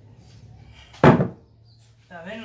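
A heavy wooden plank drops flat onto a stack of boards with a loud thud.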